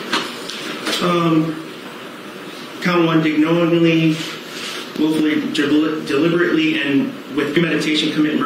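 A man speaks calmly into a microphone in a slightly echoing room.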